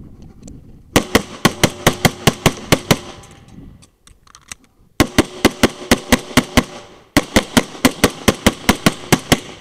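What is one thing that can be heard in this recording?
A pistol fires in rapid strings of loud shots outdoors.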